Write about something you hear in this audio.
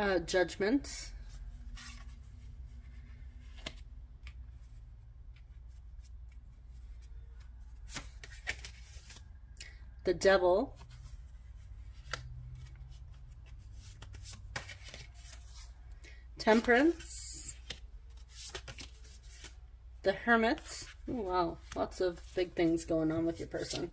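Cards are laid down softly on a cloth with light taps and slides.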